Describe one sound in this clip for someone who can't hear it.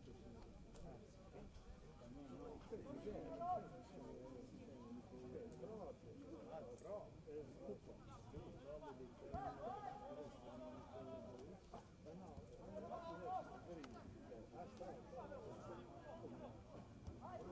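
Young men shout and call to each other across an open field, heard from a distance.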